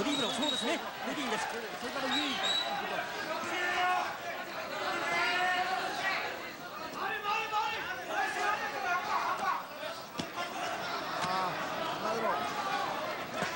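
Boxing gloves thud against a body.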